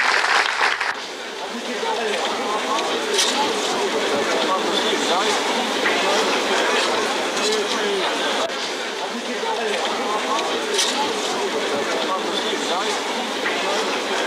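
Many men and women talk at once, close by.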